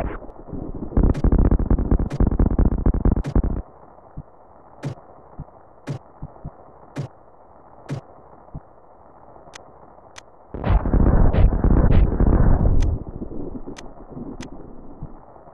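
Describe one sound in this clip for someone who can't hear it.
A video game character's footsteps tap in a steady rhythm.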